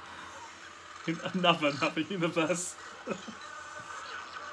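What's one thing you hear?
A young man laughs close up.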